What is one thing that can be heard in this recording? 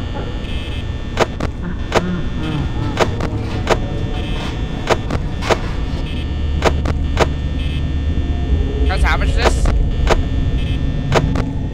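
A desk fan whirs steadily.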